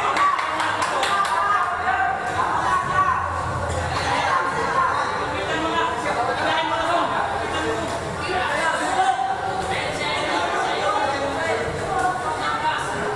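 A crowd of spectators chatters and shouts throughout in an echoing hall.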